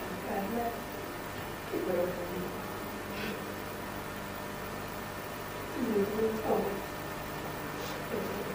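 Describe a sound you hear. A woman speaks in short phrases.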